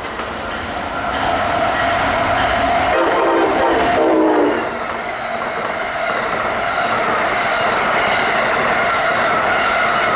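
An electric passenger train passes at speed, its wheels clattering over the rails.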